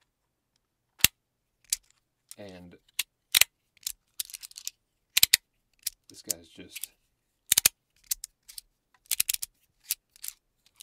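Plastic pieces click and snap together sharply.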